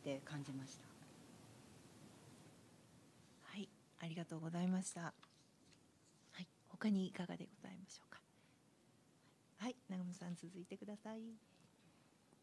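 A woman speaks calmly and haltingly into a microphone.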